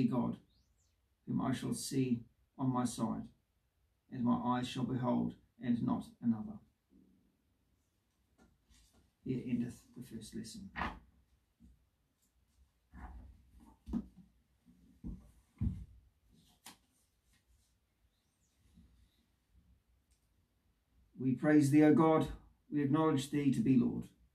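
A man reads aloud calmly and close by, with short pauses.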